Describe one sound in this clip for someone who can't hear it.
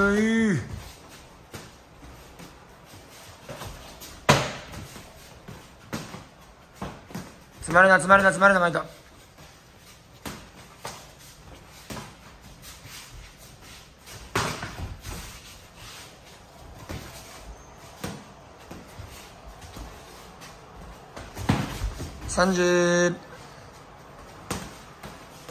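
Bare feet shuffle and thump on a mat.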